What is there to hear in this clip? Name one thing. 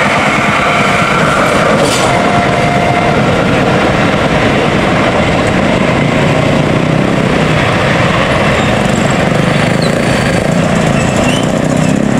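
A train rumbles away into the distance.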